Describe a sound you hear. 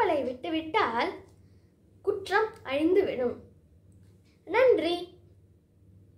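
A young girl speaks clearly and calmly close by.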